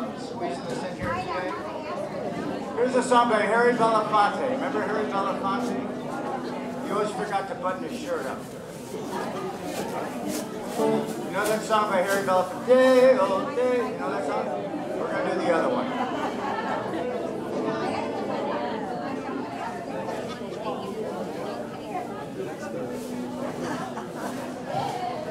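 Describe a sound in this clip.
A band plays country music through loudspeakers in a large room.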